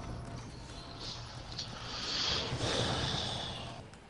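A bright magical shimmer swells and fades.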